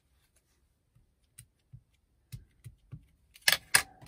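An ink pad case clicks and taps on a hard surface.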